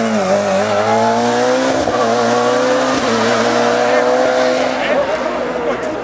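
A racing saloon car accelerates hard uphill, its engine revving high.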